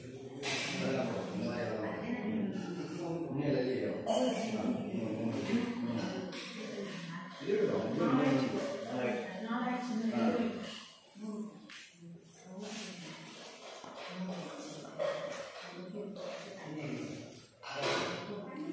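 Several women talk and chatter together nearby.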